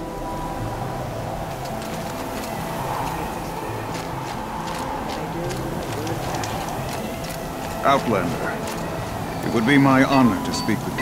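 Wind howls steadily through a snowstorm.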